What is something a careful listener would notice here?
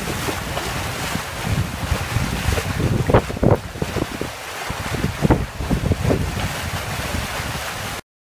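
Water rushes and splashes in a boat's wake.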